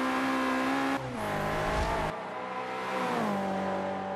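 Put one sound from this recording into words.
A racing car engine drops in pitch as gears shift.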